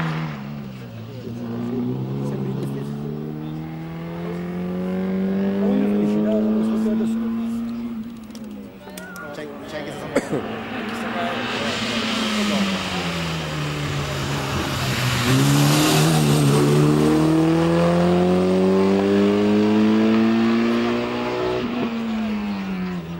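A rally car engine revs hard, rising and dropping in pitch as it shifts gears close by.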